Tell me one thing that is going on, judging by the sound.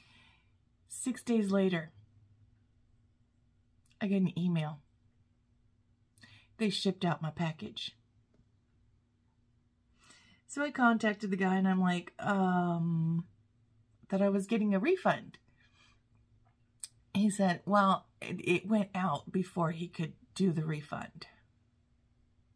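A woman talks calmly into a close microphone, in short phrases with pauses.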